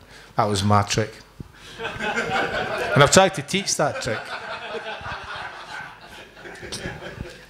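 Several people laugh nearby.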